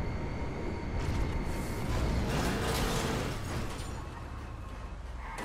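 A car crashes and rolls over with loud metallic crunches.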